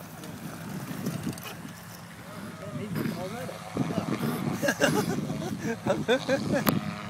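A small propeller engine drones steadily.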